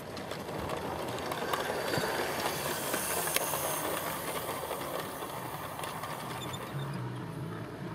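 A model locomotive hums as it passes close by.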